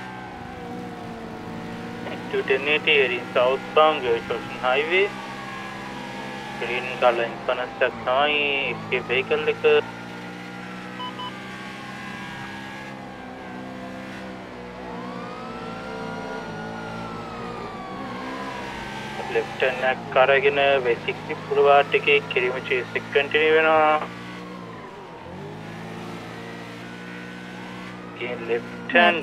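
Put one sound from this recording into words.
A motorcycle engine hums steadily as it rides.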